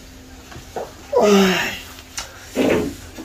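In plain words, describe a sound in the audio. A young man groans and yawns close by.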